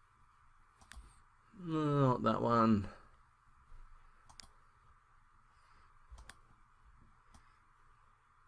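Soft interface clicks sound as options are selected.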